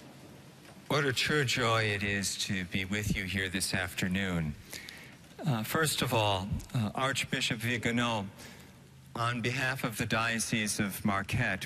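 A man speaks calmly into a microphone in a large echoing hall.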